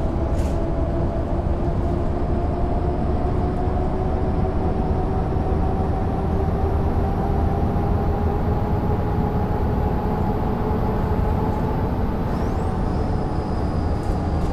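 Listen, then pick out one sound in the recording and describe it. A bus engine hums steadily with a rising whine as the bus drives along.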